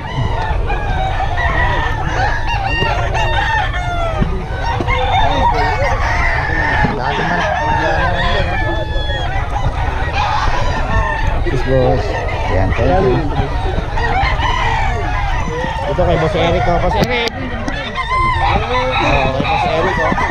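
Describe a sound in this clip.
Many men and women chatter loudly all around outdoors.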